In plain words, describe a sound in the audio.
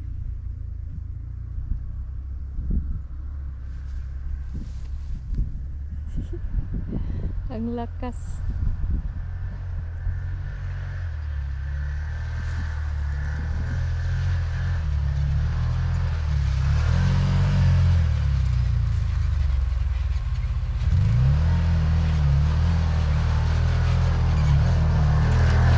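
Wind blows in gusts across the microphone outdoors.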